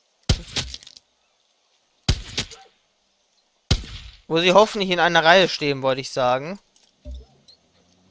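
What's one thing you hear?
A rifle fires several sharp, loud shots.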